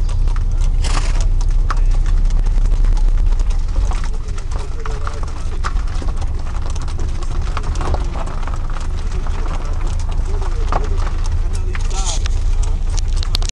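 Horses' hooves clop slowly on a gravel track.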